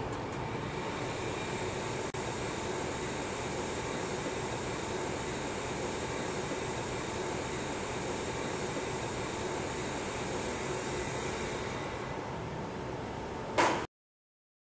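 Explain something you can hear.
An elevator hums steadily as it rises.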